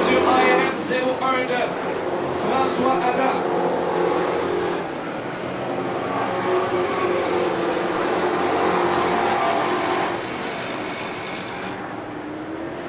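Race car engines roar loudly, rising and falling in pitch.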